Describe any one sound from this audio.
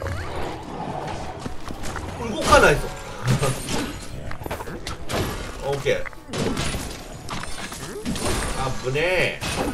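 Magic blasts zap and weapon hits thud in a fast fight.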